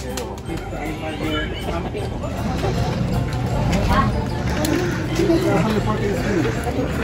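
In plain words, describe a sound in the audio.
Several adults talk and murmur nearby outdoors.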